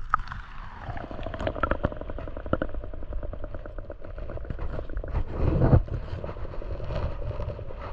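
Muffled underwater rumbling goes on with many crackling clicks.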